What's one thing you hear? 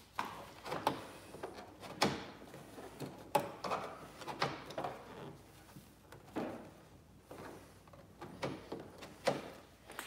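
Plastic trim clicks as hands handle a car's tail light.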